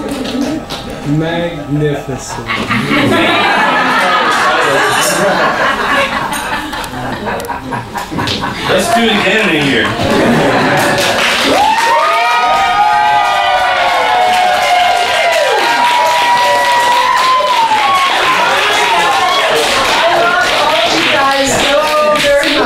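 A folk band plays lutes, fiddles and hurdy-gurdy together.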